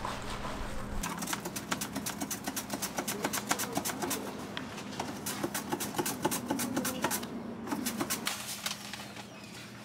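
A carrot scrapes rapidly across a grater.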